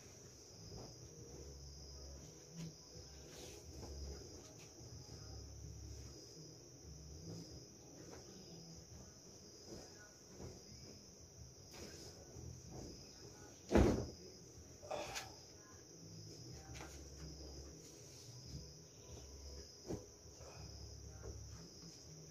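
A sheet rustles and flaps as it is shaken out and spread.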